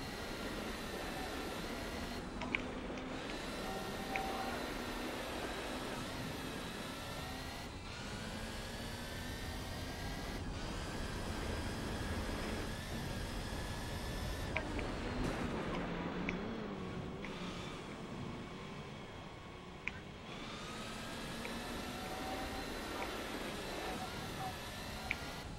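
A racing car engine roars and revs up and down as gears shift.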